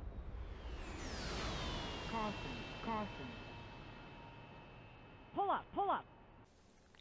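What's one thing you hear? A missile whistles as it falls.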